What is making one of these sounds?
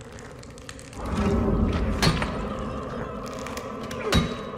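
A heavy metal object scrapes and drags along a floor.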